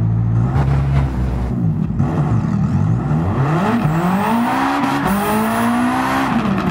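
A race car engine revs up and down, rising steadily in pitch as it accelerates.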